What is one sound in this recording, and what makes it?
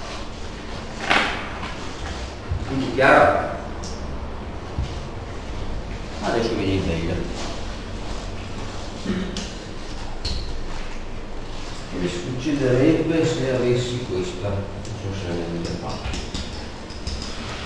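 A man speaks calmly, explaining, in a room with a slight echo.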